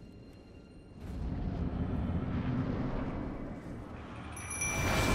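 A deep rushing whoosh swells and fades.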